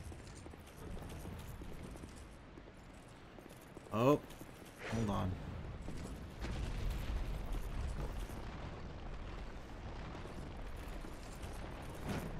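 Armoured footsteps clatter on stone.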